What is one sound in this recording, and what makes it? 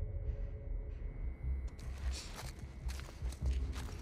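A spiked club strikes a body with a heavy thud.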